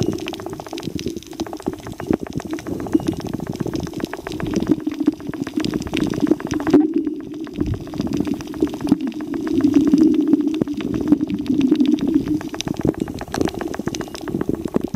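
Water churns in a steady, muffled underwater rumble.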